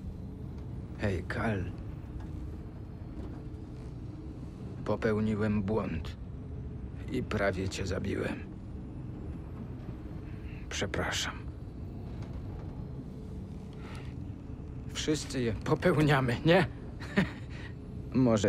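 A young man speaks quietly and calmly.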